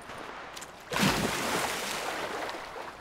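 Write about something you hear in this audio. A body splashes heavily into water.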